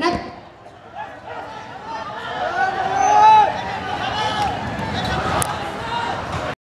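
A crowd of young men shouts and cheers close by.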